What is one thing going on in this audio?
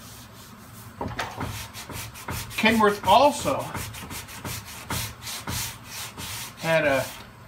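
A sanding block scrapes back and forth in quick strokes.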